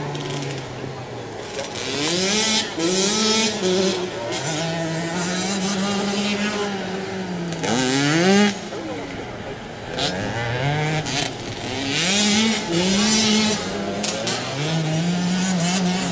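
Small dirt bike engines rev up and down.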